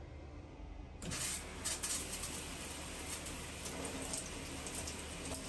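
Water sprays steadily from a shower head.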